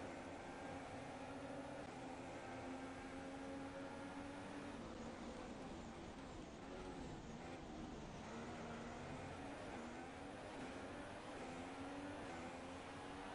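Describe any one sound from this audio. A racing car engine roars at high revs, its pitch rising and falling with gear changes.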